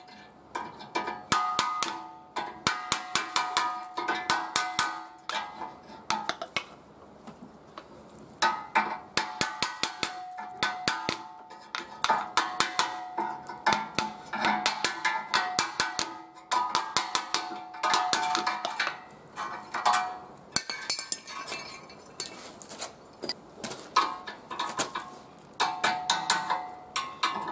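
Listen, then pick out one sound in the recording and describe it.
A hammer strikes a metal chisel in quick bursts of ringing blows.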